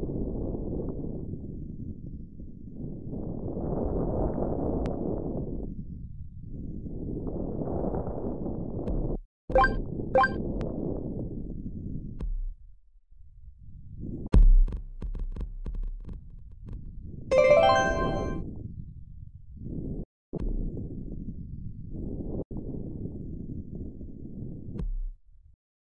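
A ball rolls with a low rumble along a track.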